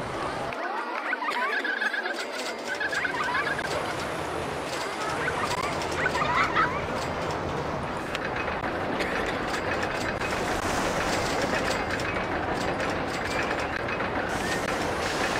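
A roller coaster train rattles along its track.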